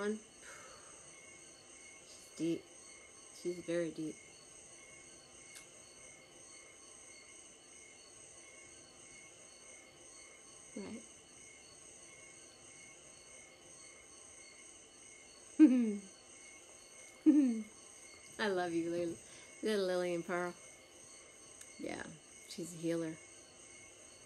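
A woman talks softly and cheerfully, close by, into a phone.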